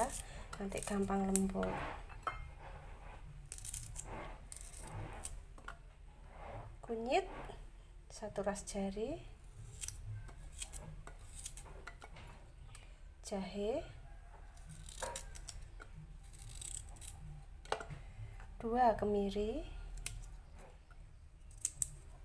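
A knife scrapes and clicks while peeling small roots by hand.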